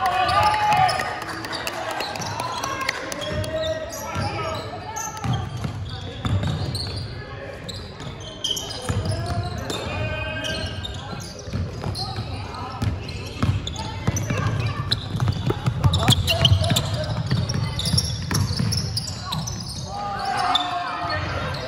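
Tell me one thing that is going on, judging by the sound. Young players shout to each other in an echoing sports hall.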